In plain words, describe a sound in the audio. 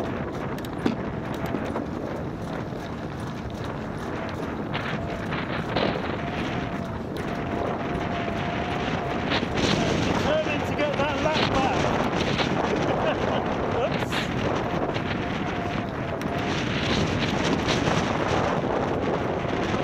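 Tyres of a recumbent trike roll on asphalt.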